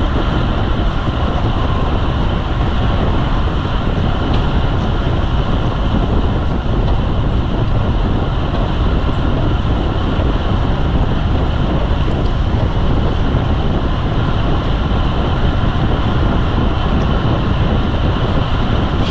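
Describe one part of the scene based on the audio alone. Wind rushes loudly and steadily past a fast-moving bicycle outdoors.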